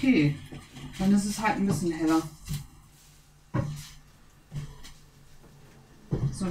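A spoon scrapes and clinks against a frying pan.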